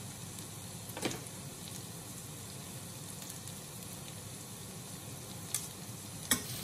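A garlic press clicks and scrapes.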